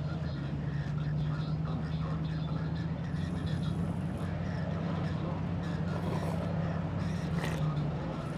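A young woman slurps a drink loudly through a straw.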